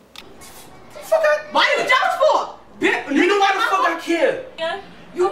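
A young man speaks forcefully up close.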